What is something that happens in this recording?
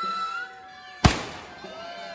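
A firecracker bangs loudly outdoors.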